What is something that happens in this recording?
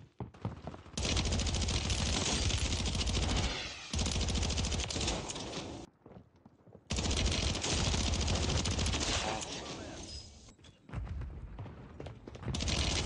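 Rapid gunfire rattles in loud, close bursts.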